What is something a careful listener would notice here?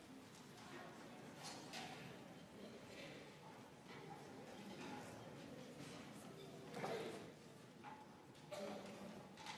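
Band instruments play in a large echoing hall.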